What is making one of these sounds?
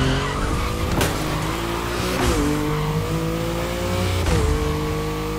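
A sports car's gearbox shifts up with a sharp crack.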